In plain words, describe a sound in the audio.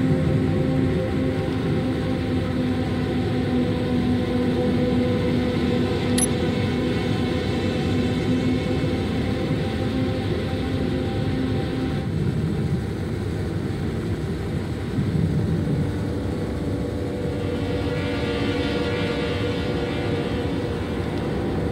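A flying craft's engines hum and roar steadily.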